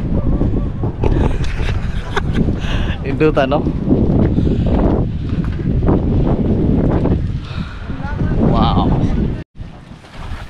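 A man talks cheerfully and close up, outdoors in wind.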